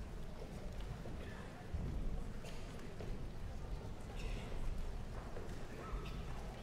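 A crowd murmurs quietly in a large hall.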